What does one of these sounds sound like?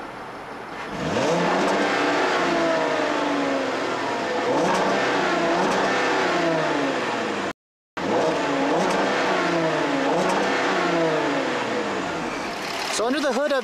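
A car engine revs loudly again and again, its pitch rising and falling.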